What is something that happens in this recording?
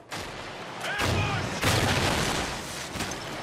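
An explosion booms close by.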